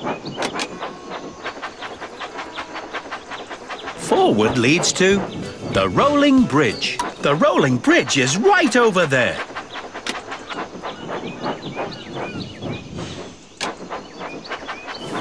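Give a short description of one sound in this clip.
A toy train clatters steadily along a track.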